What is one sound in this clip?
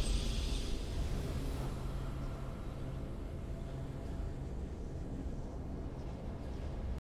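A deep, swelling game victory fanfare plays.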